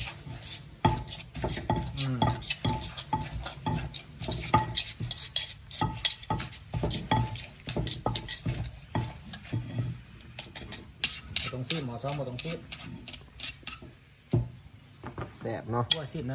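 A wooden pestle pounds rapidly in a stone mortar with dull knocks.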